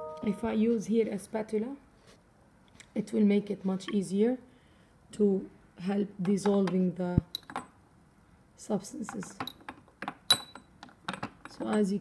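A glass test tube clinks against a plastic rack.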